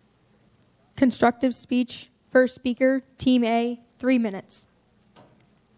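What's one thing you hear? A young woman speaks clearly through a microphone.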